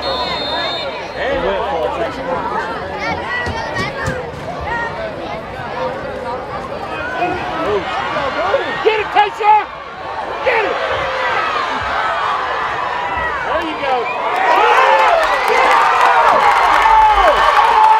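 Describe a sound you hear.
A large crowd of spectators cheers and shouts outdoors, swelling louder near the end.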